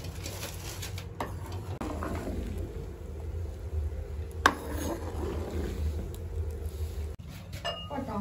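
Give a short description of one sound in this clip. Water boils and bubbles steadily in a large wok.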